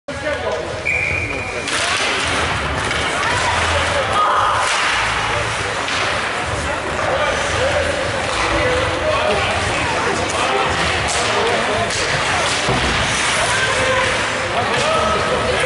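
Spectators chatter and call out in an echoing arena.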